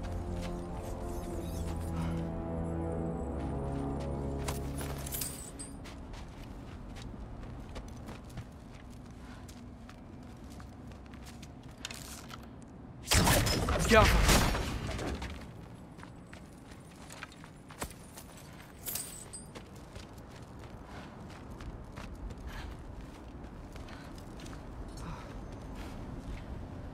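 Footsteps crunch through snow and over stones.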